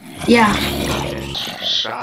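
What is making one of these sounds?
Zombies groan and growl close by.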